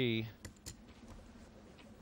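Poker chips click together.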